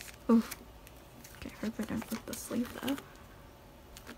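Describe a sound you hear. A stiff binder page flips over with a soft slap.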